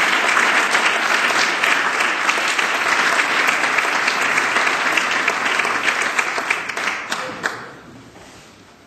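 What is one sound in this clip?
An audience applauds loudly in a large hall, then the clapping dies away.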